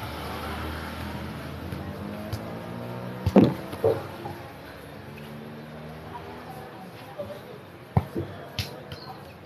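A bare foot kicks a football with dull thumps.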